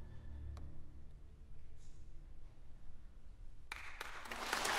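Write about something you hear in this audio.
A solo violin plays softly in a large hall.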